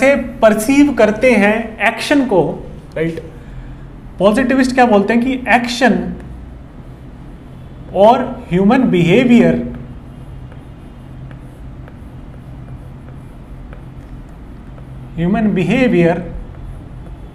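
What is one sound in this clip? A man talks calmly, as if lecturing, close by.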